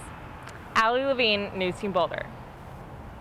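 A young woman speaks brightly into a microphone, close by.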